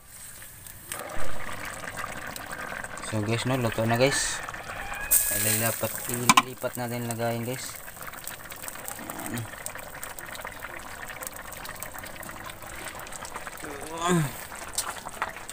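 Soup bubbles and simmers in a pan.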